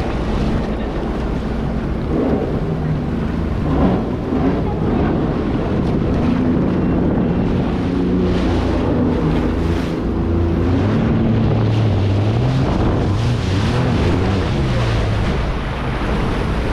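Water splashes and rushes against a hull.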